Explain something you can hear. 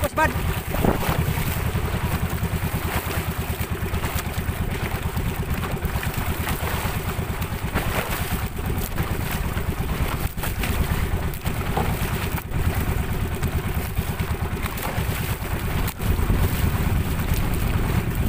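Waves splash against a moving boat's hull.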